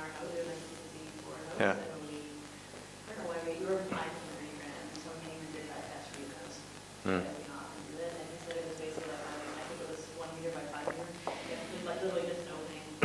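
A middle-aged man talks calmly.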